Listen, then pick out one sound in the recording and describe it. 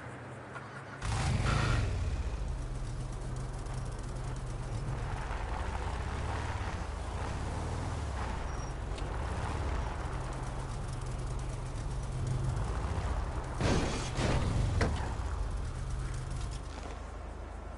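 A buggy engine revs and roars loudly.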